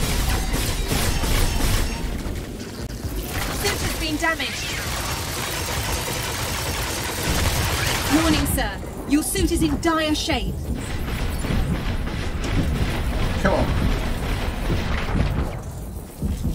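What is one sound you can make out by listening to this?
Laser blasts and explosions crackle and boom from a game.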